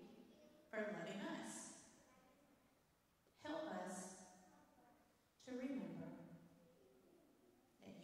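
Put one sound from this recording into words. A woman speaks in short phrases through a microphone in a large echoing hall.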